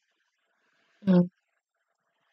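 A young woman makes a short, loud vocal sound close to a microphone.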